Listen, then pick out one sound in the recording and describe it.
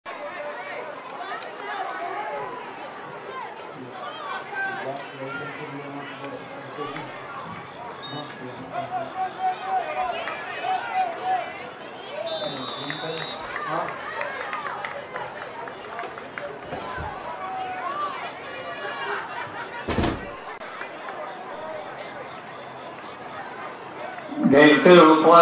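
A crowd of spectators chatters and cheers outdoors.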